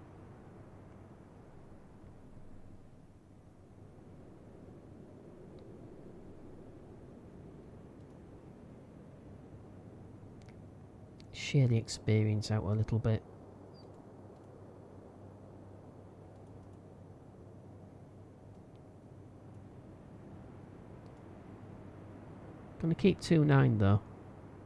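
Rough sea waves churn and slosh steadily.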